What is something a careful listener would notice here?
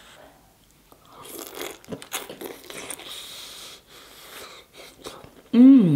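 Food crunches and squelches as a young woman chews close to a microphone.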